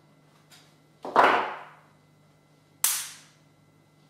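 A small tool is set down on a table with a sharp clack.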